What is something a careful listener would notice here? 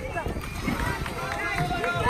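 A child splashes into the water close by.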